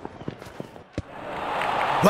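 A cricket bat strikes a ball with a sharp knock.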